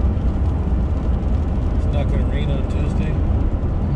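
Raindrops tap lightly on a windshield.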